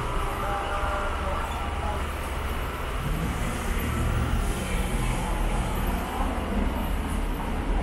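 A motor scooter whirs past close by.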